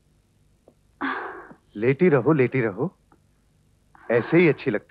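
A man speaks loudly and sternly nearby.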